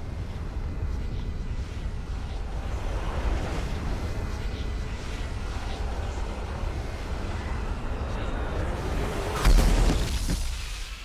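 Debris roars past in a loud rushing blast.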